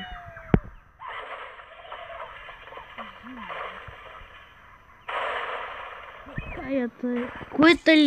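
Wooden and stone blocks crash and tumble down.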